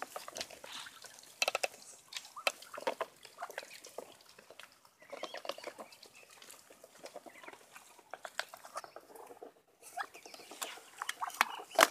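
Ducks peck and dabble noisily at food.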